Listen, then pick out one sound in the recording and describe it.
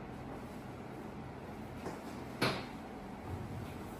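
A blanket rustles as it is pulled aside.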